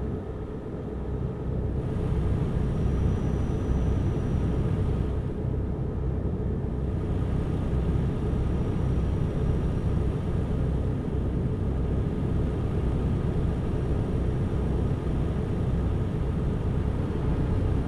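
A truck engine drones steadily while driving.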